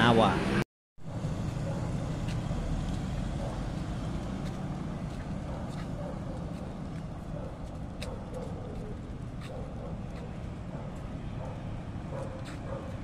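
Footsteps scuff softly on pavement outdoors.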